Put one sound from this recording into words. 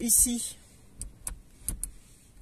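Plastic buttons click as a finger presses them.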